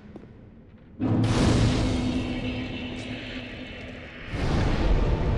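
A fire flares up with a loud whoosh and slowly dies down.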